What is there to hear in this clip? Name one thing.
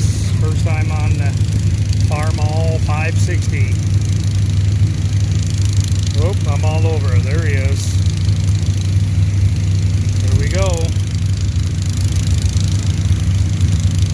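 An antique farm tractor engine idles with a low, steady rumble.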